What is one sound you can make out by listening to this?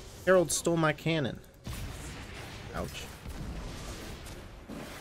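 Fantasy battle sound effects whoosh and clash.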